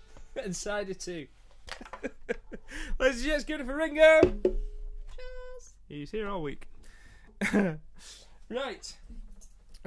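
A ukulele is strummed.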